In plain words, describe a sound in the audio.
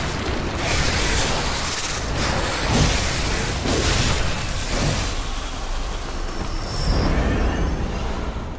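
A large monster roars and snarls.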